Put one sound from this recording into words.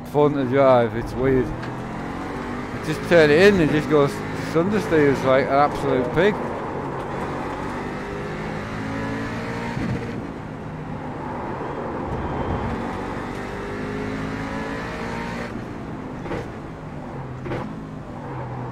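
A race car engine roars steadily.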